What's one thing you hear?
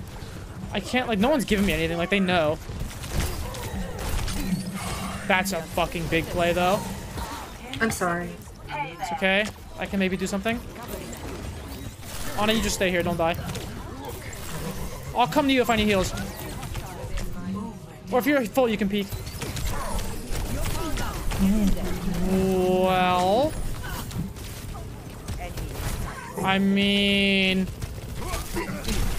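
Gunfire and explosions from a game rattle and boom.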